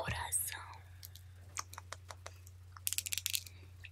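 Fingernails tap and click close to a microphone.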